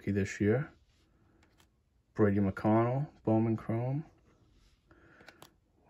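Stiff trading cards slide and flick softly against each other in a hand.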